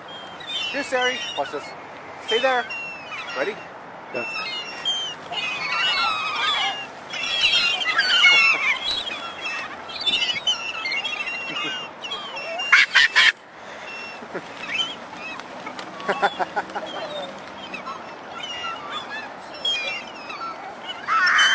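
A young girl shouts and squeals excitedly.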